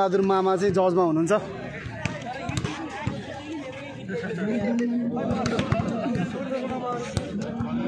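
A crowd of men and women chatters and calls out outdoors.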